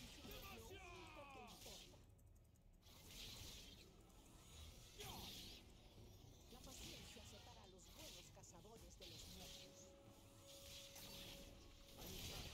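Game sound effects of spells and hits crackle and whoosh.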